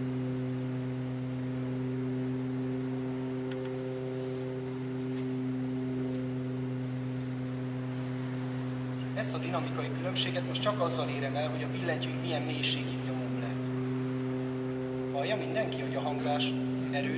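An organ holds a steady low chord.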